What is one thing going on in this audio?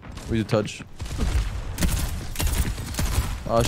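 Gunfire rattles in quick bursts.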